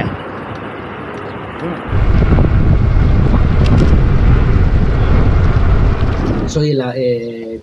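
Wind rumbles loudly against a moving rider outdoors.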